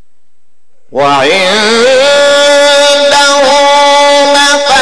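A man chants loudly and melodically through a microphone, with echo.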